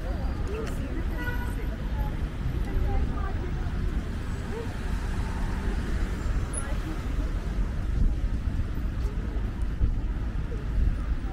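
Traffic hums steadily along a nearby road.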